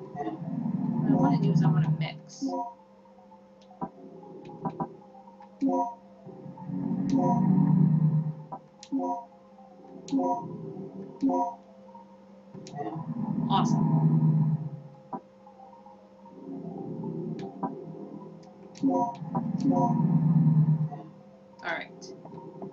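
Short electronic menu blips sound as items are selected.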